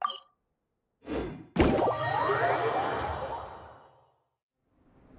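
A magical whoosh rises and swells, then fades away.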